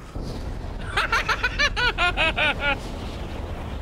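A man laughs loudly into a microphone.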